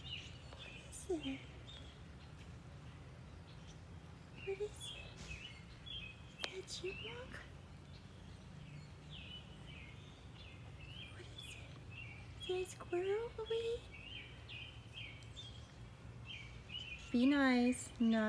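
A dog whines and whimpers excitedly.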